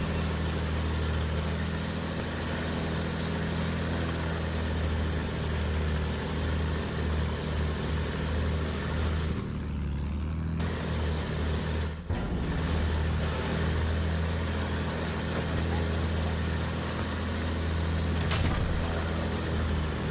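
A propeller engine drones steadily throughout.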